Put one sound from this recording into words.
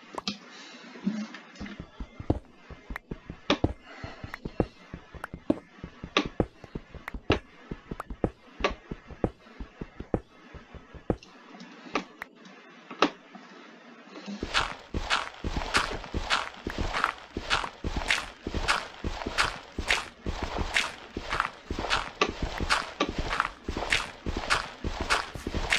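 Blocks crack and break in quick, repeated game sound effects.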